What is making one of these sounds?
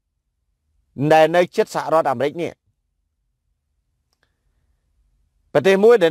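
A man speaks calmly and close to a phone microphone.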